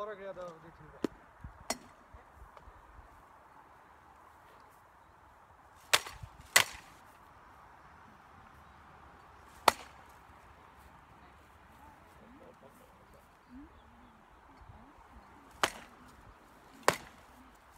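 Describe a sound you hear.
Swords clash and strike shields in sharp, loud knocks now and then.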